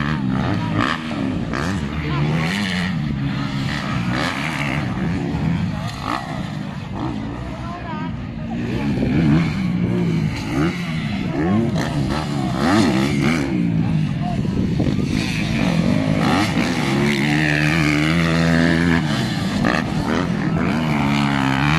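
Several dirt bike engines rev and whine, rising and falling in pitch.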